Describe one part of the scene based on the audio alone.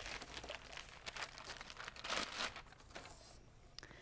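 A plastic bag crinkles as it is pulled from a box.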